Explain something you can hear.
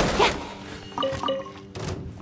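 A short chime rings as an item is picked up.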